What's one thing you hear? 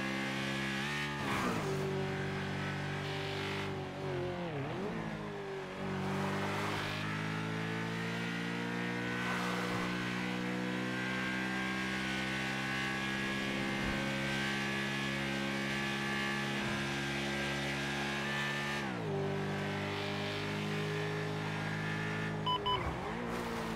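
A motorcycle engine roars steadily, its pitch dropping as the rider shifts gears and rising again as it speeds up.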